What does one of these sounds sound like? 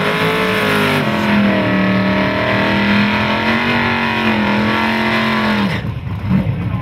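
A car's engine roars loudly.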